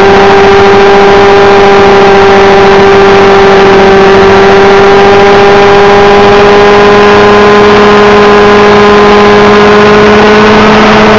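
A model helicopter's engine whines loudly and steadily up close.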